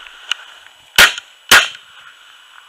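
A shotgun fires two loud blasts outdoors.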